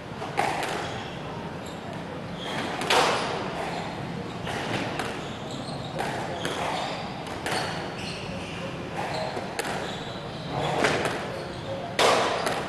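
A squash ball smacks sharply against walls and rackets in a rally.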